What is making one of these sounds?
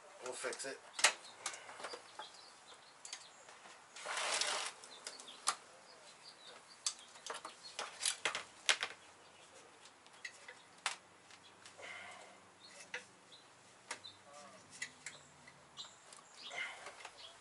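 Metal tools clink and knock against car parts.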